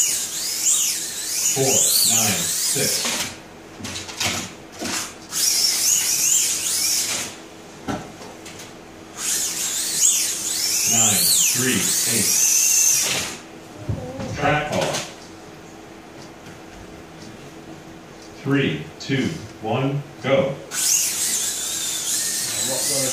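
Slot cars whine around a track, rising and falling in pitch as they speed up and slow down.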